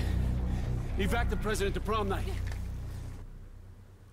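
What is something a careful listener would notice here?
A man speaks urgently in a game scene.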